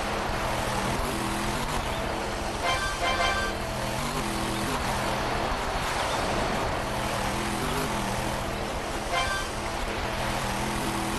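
A truck engine revs steadily.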